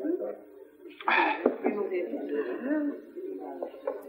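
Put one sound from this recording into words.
A young woman speaks in a lilting, wistful voice.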